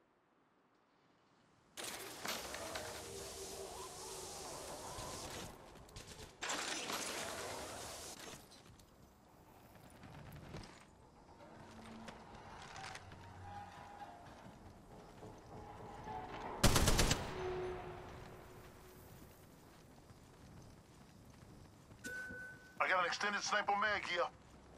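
Footsteps patter quickly over hard ground.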